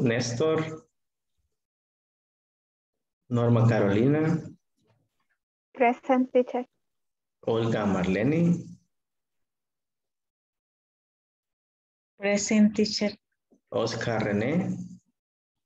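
A man speaks in short phrases with pauses, heard through an online call.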